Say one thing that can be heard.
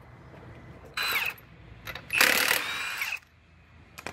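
An impact wrench rattles in short bursts.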